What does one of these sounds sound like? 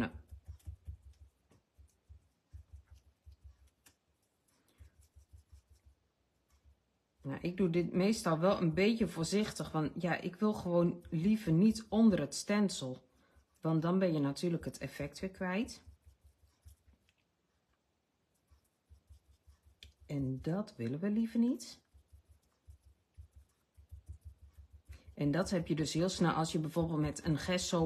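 Fingers rub firmly over paper with a soft, dry scuffing.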